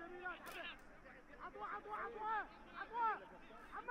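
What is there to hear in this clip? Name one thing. A football is kicked hard with a dull thud.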